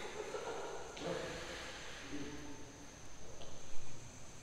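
A badminton racket strikes a shuttlecock in an echoing hall.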